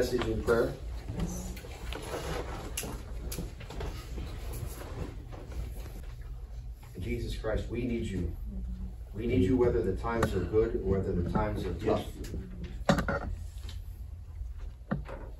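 A man speaks calmly to a group.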